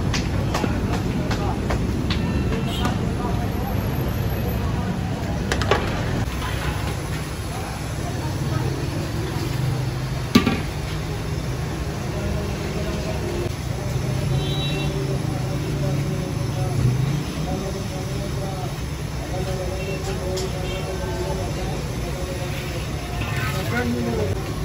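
A large pot of liquid bubbles and simmers.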